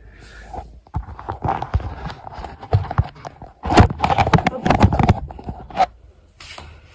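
A hand rubs and knocks against a phone microphone, making loud rustling thumps.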